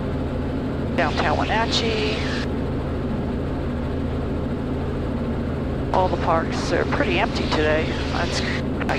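A woman speaks calmly over a headset microphone.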